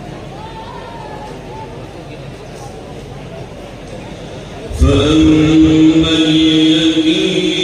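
An elderly man chants through a microphone, then breaks into a loud, long drawn-out melody.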